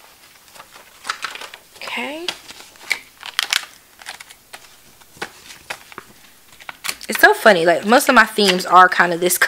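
Paper pages rustle and flap as they are handled.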